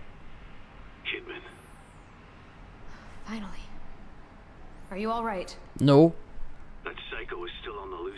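A man's voice answers through a crackly radio.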